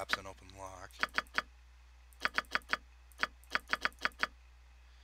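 Game menu buttons give short clicks, one after another.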